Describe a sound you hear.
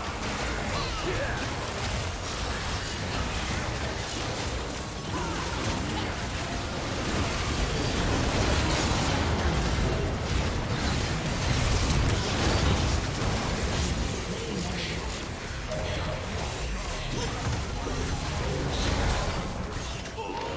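Fantasy battle effects crackle, clash and explode in quick bursts.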